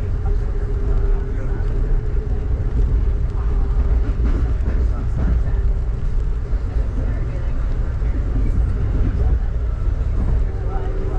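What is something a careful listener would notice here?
A vehicle's engine and tyres rumble steadily while driving.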